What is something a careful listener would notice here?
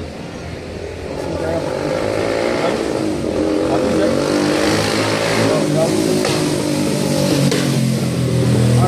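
Several young men talk and chant loudly close by.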